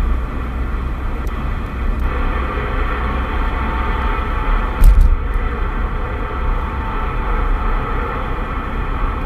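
A radio hisses with static.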